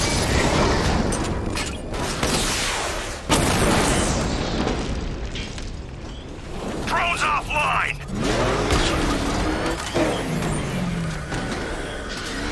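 Explosions and gunfire bang sharply.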